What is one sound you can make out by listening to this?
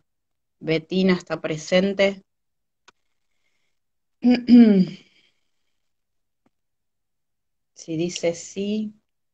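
A woman speaks in short bursts over an online call.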